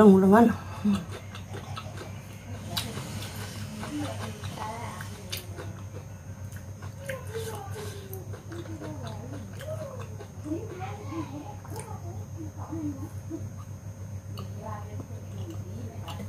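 A woman chews food with soft, wet smacking sounds close by.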